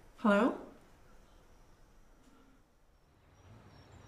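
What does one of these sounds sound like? A woman speaks quietly into a phone.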